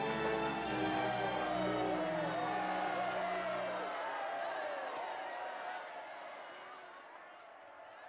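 A large crowd of men shouts and jeers, then fades away.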